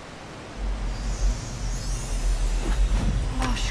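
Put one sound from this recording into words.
A magical shimmer swells and sparkles.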